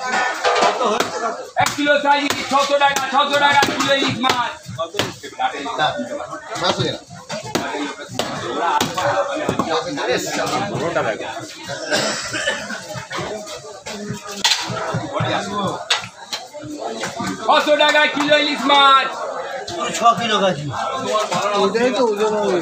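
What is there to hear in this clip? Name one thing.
A blade thuds and scrapes through a fish.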